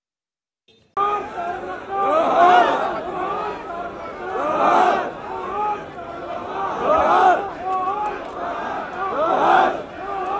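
A crowd of men talks loudly outdoors.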